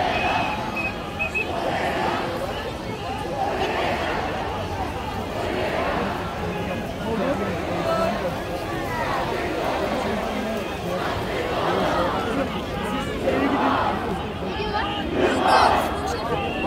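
A large crowd cheers and chants loudly outdoors.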